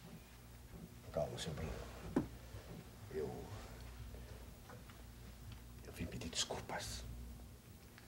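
An elderly man speaks quietly.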